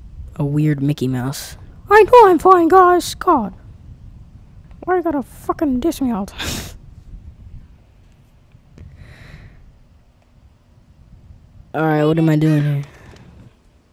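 A woman speaks with animation into a close microphone.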